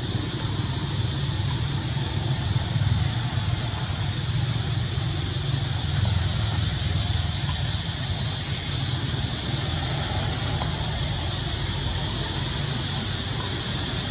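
A small monkey scrabbles and scratches on tree bark as it climbs.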